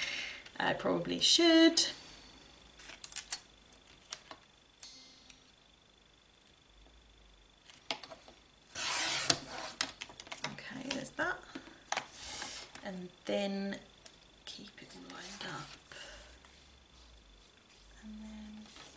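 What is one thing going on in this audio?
Card stock rustles and taps as it is handled.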